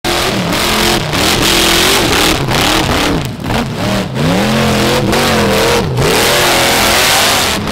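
An off-road buggy engine revs hard, rising and falling in pitch.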